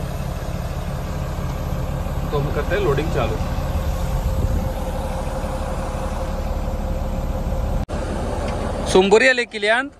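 A heavy machine's engine rumbles steadily nearby.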